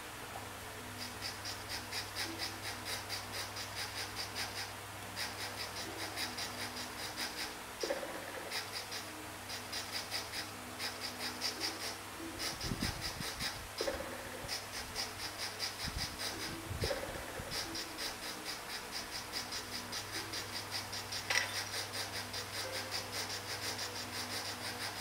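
Fast grating and squelching game sound effects rattle on in quick bursts.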